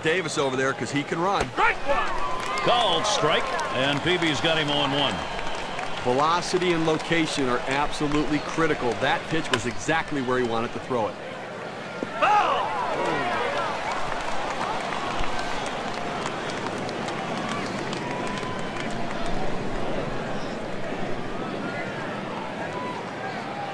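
A crowd murmurs and cheers in a large stadium.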